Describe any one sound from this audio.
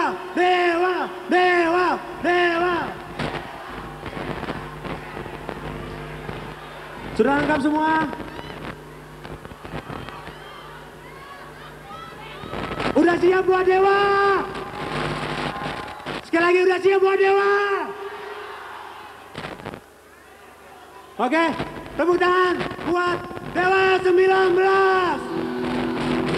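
A man shouts and chants into a microphone through loudspeakers in a large echoing space.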